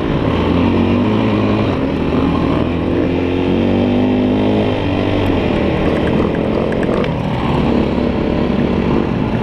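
A dirt bike engine roars up close and changes pitch as it revs.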